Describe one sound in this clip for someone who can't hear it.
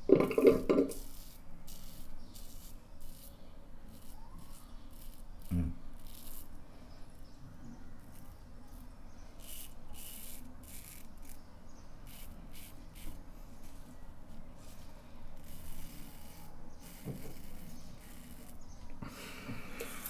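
A razor scrapes over stubble in short strokes.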